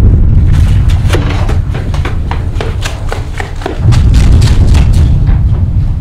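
Footsteps crunch over dry leaves.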